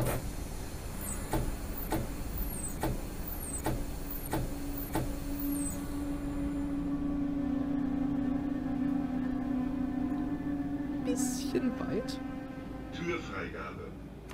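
A train motor hums steadily as the train slows.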